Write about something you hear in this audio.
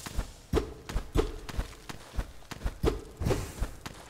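A blade swishes as it slashes through the air.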